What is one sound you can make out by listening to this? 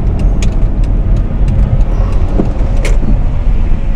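Raindrops tap lightly on a car window.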